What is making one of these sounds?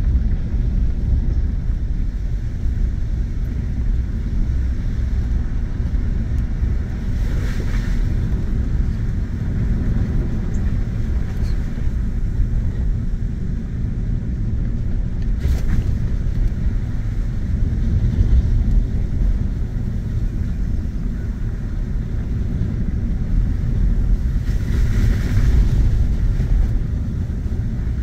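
Tyres rumble and crunch over a dirt road.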